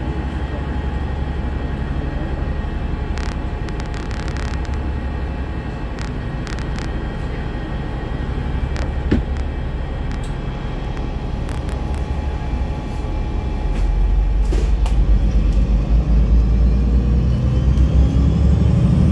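A car's engine idles and then pulls away, growing louder.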